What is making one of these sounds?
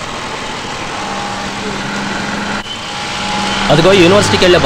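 A bus engine rumbles as the bus approaches.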